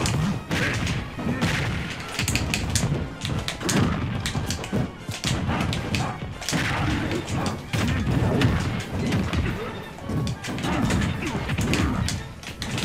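Sharp hits and thumps from a fighting game land again and again.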